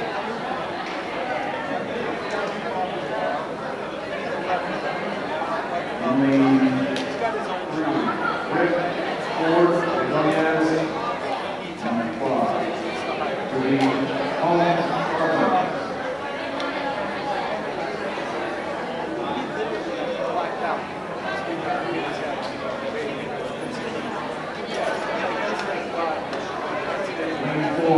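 A crowd of young people chatters and calls out in a large echoing hall.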